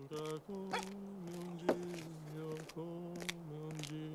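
A man's footsteps crunch on snow.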